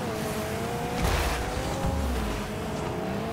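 A video game car's rocket boost roars.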